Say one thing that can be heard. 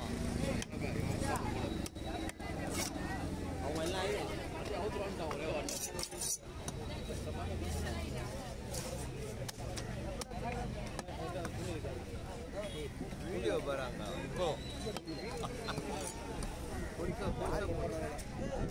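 A knife scrapes scales off a fish.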